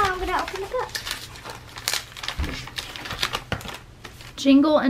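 Paper crinkles and rustles as a girl handles a paper bag.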